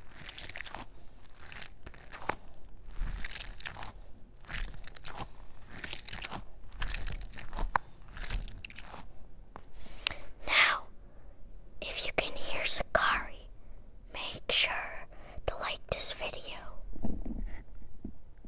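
A young boy whispers softly, very close to a microphone.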